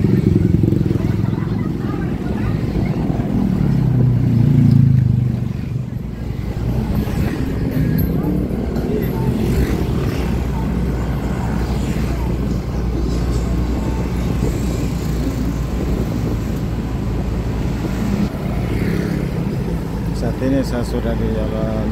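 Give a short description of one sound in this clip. Traffic noise fills the open air.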